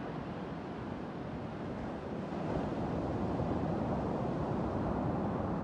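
Ocean waves roll and break steadily on a beach, swelling louder midway.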